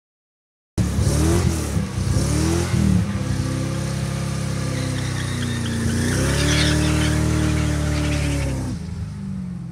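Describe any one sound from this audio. A car engine revs loudly and roars.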